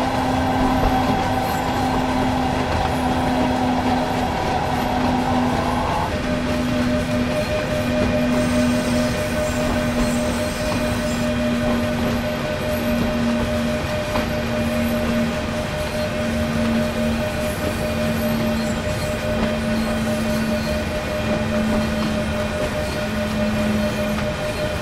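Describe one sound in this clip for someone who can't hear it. An electric locomotive hums steadily as it pulls a freight train.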